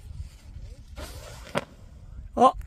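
A firework hisses as it shoots up into the sky.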